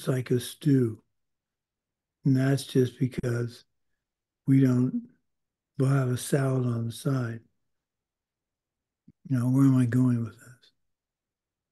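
An older man speaks calmly in short phrases, heard through an online call.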